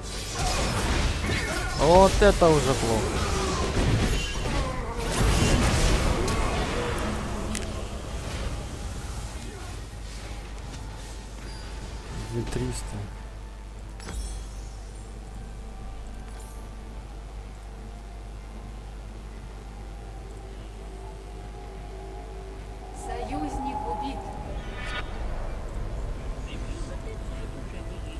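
A man talks calmly into a nearby microphone.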